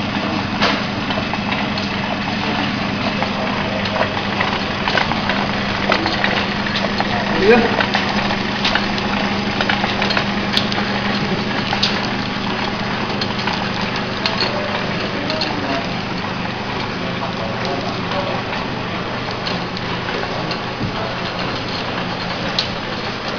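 A packaging machine clicks and knocks at intervals.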